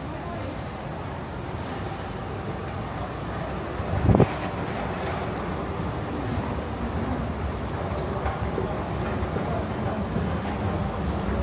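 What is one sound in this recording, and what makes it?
An escalator hums and rumbles steadily.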